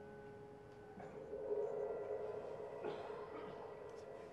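A drum is struck with sticks.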